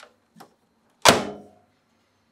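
A microwave door clicks shut.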